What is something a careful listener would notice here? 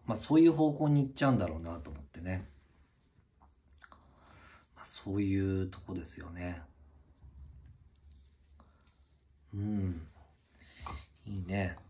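Hands handle a knife and a leather sheath with soft rustles.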